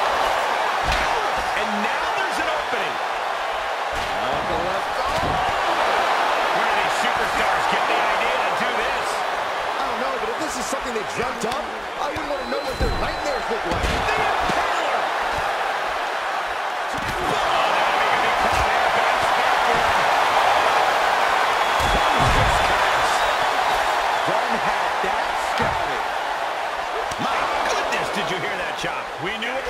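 A large crowd roars and cheers steadily in a big echoing arena.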